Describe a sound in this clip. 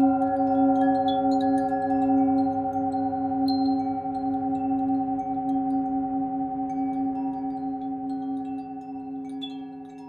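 A singing bowl hums with a steady, ringing tone that slowly fades.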